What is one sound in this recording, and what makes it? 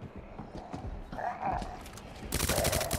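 A zombie groans nearby.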